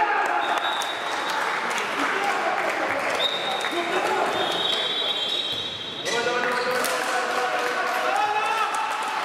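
Men shout to each other in an echoing hall.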